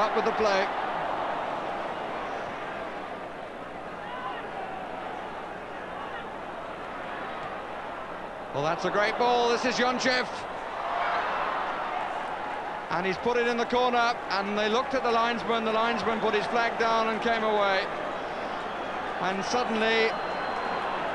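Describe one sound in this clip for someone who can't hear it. A large crowd roars in a stadium.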